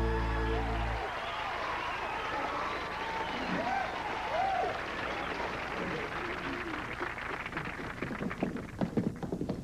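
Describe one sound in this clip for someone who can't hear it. A crowd cheers and claps in a large hall.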